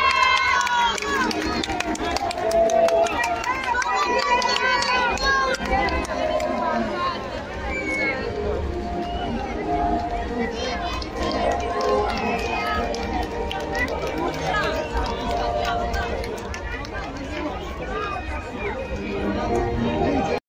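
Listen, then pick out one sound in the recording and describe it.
A large crowd outdoors cheers and shouts excitedly.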